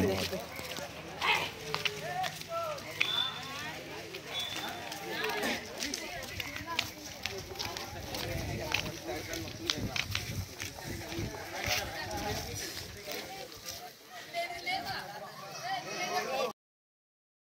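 Footsteps shuffle on a paved path outdoors.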